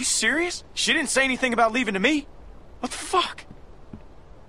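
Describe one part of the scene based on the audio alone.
A young man speaks with disbelief and anger, close by.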